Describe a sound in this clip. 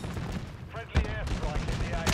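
A single loud rifle shot rings out.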